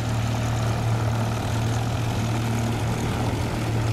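A small plane's engine idles and hums as it taxis.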